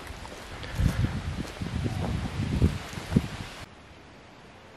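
Footsteps crunch on a dry forest path.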